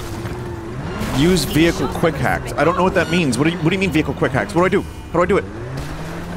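Car tyres screech while the car skids and turns.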